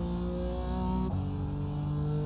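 A racing car engine drops in pitch as a gear shifts up.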